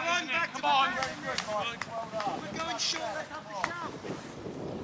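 Men shout loudly to one another outdoors.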